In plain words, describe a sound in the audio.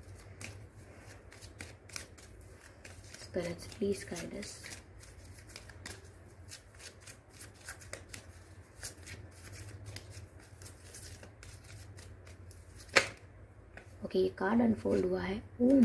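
Playing cards riffle and slap softly as they are shuffled.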